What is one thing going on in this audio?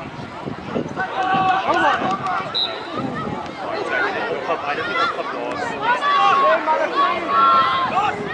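Young players shout to each other across the field.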